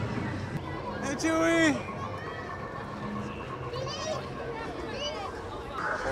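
A crowd chatters outdoors.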